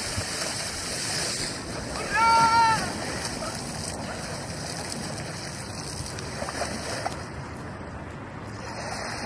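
Water splashes loudly close by.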